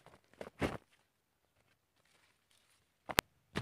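Leafy plants rustle as a boy picks from them.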